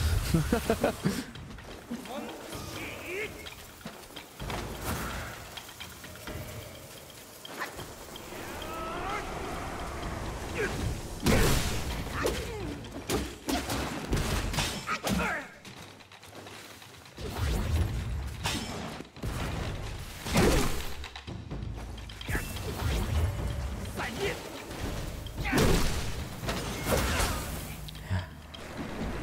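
A man speaks close to a microphone with animation.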